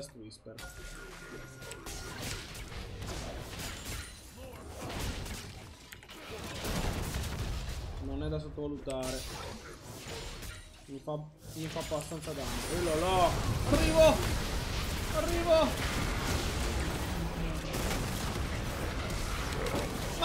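A young man talks with animation into a headset microphone, close up.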